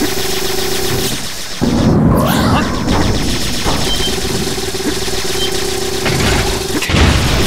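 Electric zaps crackle and buzz loudly.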